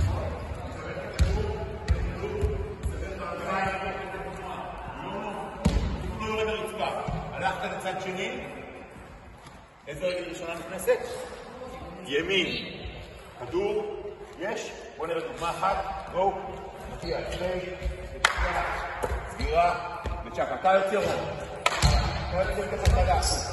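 Basketballs bounce on a wooden floor.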